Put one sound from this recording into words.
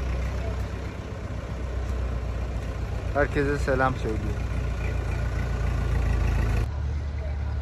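A tractor engine chugs nearby.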